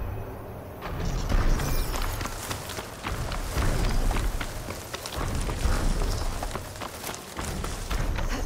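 Footsteps rustle through dry brush.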